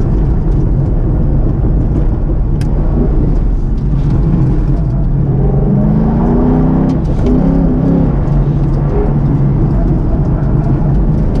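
Tyres rumble over pavement.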